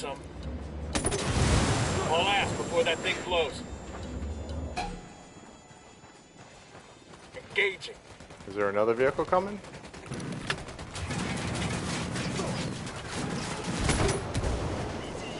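Gunfire bursts out in quick shots.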